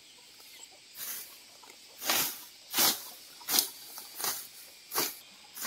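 Leafy plants rustle and tear as they are pulled up by hand.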